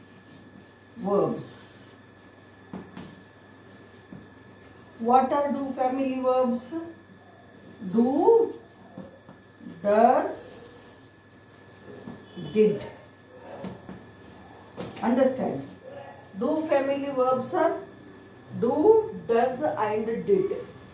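A middle-aged woman speaks slowly and clearly, close by.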